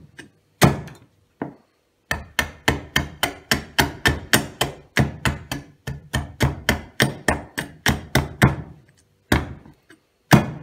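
A knife is drawn along a sharpening steel in quick, ringing strokes.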